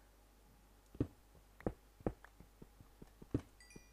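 A pickaxe chips at stone in a quick series of knocks.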